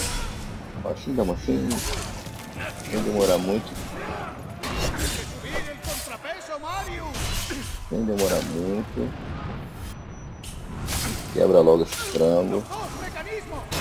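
Men grunt and cry out in pain.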